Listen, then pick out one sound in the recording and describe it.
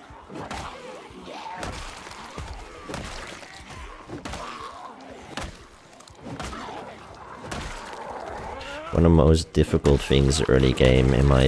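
Heavy blows thud repeatedly against bodies.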